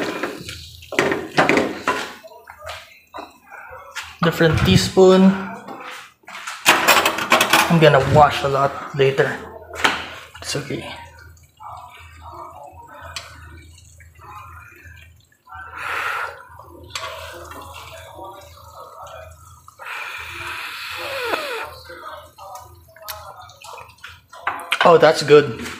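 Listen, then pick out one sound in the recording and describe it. A spatula scrapes and stirs food in a frying pan.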